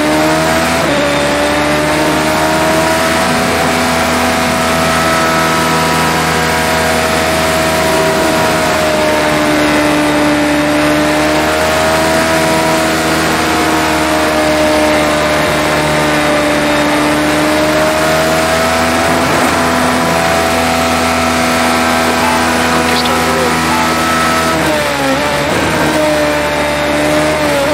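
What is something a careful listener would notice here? Rain hisses on the car and track.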